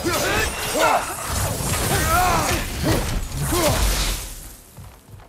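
Heavy blows strike during a fight.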